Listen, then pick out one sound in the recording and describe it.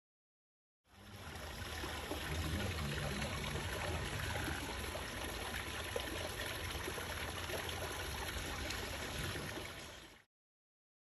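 Water trickles steadily into a pool.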